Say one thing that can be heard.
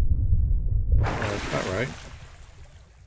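Water splashes as a swimmer breaks the surface.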